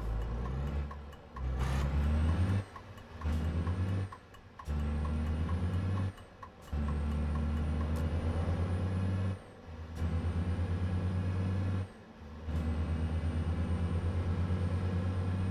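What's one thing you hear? A truck engine drones low and steady, dropping away briefly several times as gears change.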